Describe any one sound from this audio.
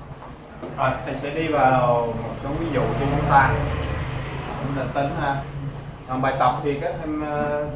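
A board eraser rubs across a whiteboard.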